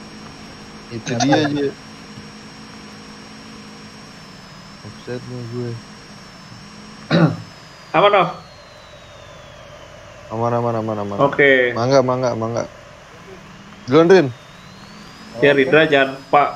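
A young man talks with animation in short bursts into a close microphone.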